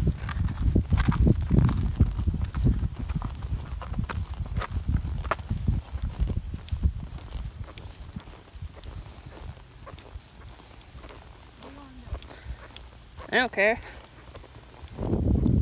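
Horse hooves thud steadily on grass and gravel.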